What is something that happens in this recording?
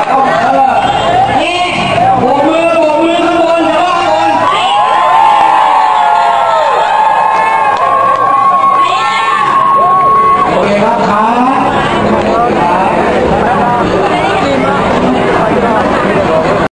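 A large crowd screams and cheers loudly.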